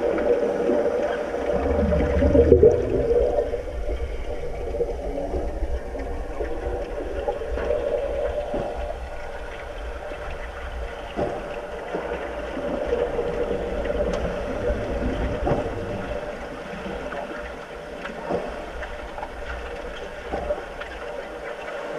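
Swimmers kick and splash, heard muffled from below the water.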